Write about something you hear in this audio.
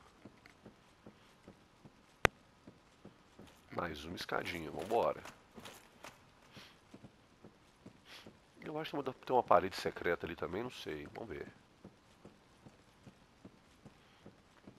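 Footsteps knock softly on wooden ladder rungs at a steady pace.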